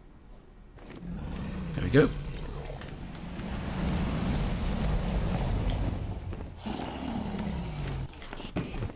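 A large dragon growls and roars nearby.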